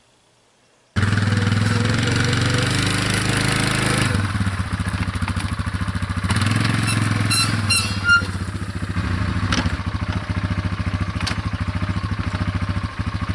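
An all-terrain vehicle engine idles and revs nearby.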